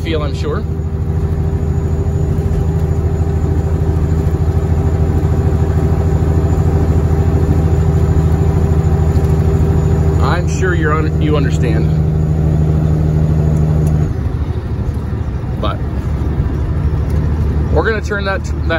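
A truck engine drones steadily while driving at speed.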